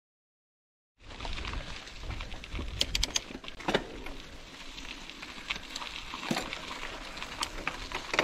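Bicycle tyres crunch and rattle over a dirt trail.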